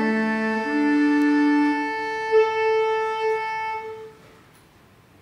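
A small ensemble of instruments holds a sustained final chord that dies away.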